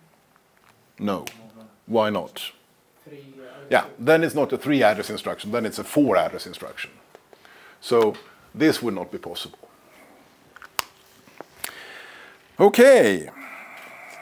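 A middle-aged man talks steadily, explaining.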